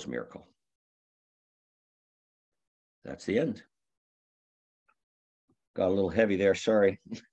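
An elderly man speaks calmly through an online call microphone, in short bursts with pauses.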